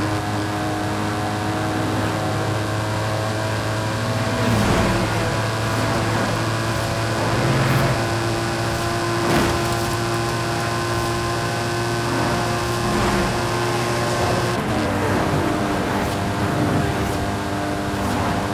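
A sports car engine hums steadily as the car speeds along.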